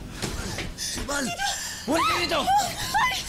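A man shouts tensely nearby.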